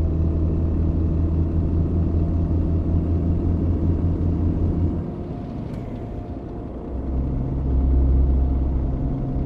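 A diesel truck engine drones at highway speed.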